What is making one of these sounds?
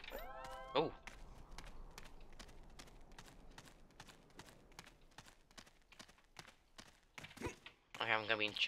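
Footsteps patter quickly and steadily on hard ground.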